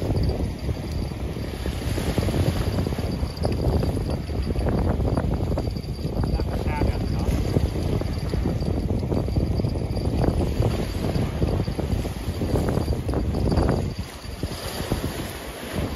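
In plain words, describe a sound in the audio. Small waves splash and wash against the shore.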